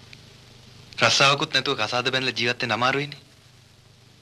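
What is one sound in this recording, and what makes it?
A second man answers with animation, close by.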